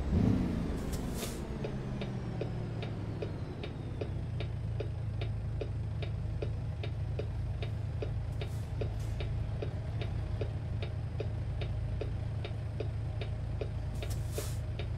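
A turn signal ticks steadily.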